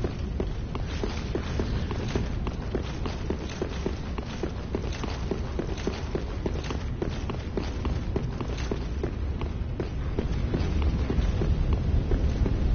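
Armoured footsteps clank quickly on stone stairs and floor.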